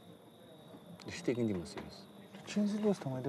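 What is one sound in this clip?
Another man asks a question calmly nearby.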